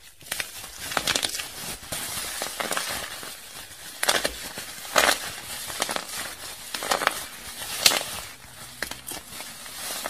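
Bubble wrap bubbles pop with sharp little snaps.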